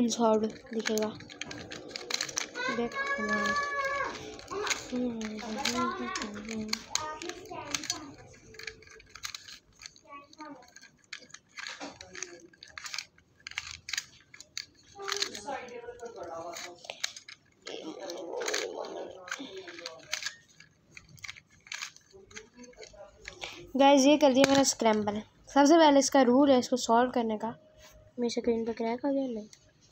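Plastic puzzle pieces click as they are twisted.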